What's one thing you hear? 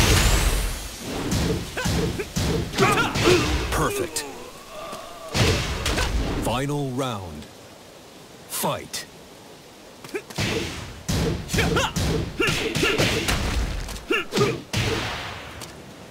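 Heavy punches and kicks land with sharp thuds and cracks.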